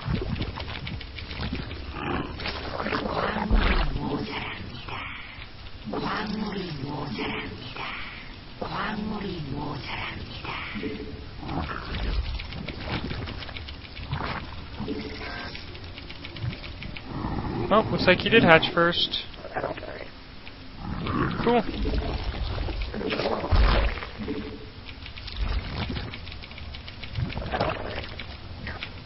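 Game creatures chirp and click as they are commanded.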